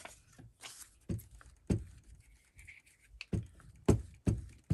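A glue stick rubs across paper.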